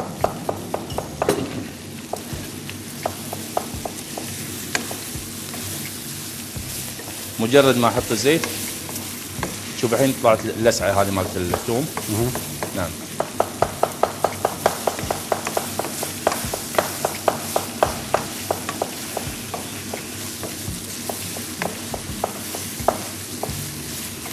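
A wooden spoon scrapes and knocks against a frying pan.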